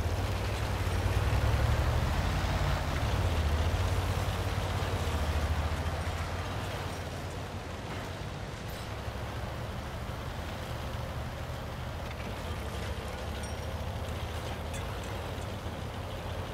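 Tank tracks clank and rattle on the ground.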